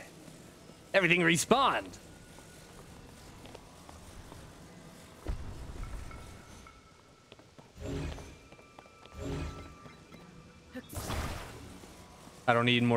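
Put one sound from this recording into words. A soft, eerie hum rings out.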